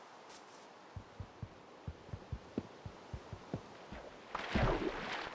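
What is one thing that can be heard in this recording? Leaf blocks crunch and break in quick, repeated taps.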